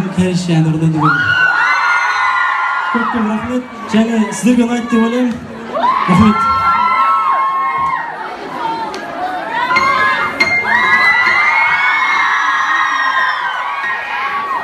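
A crowd screams and cheers loudly.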